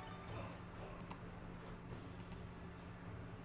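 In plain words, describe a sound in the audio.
Short high beeps from a video game sound twice in quick pairs.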